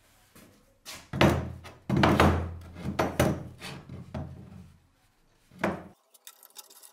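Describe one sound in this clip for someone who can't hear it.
Metal parts clank and knock as they are clamped together.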